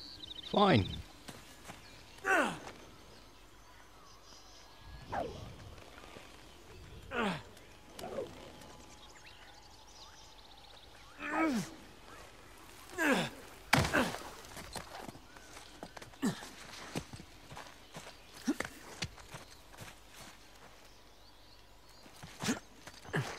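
Hands grab and scrape against rock during a climb.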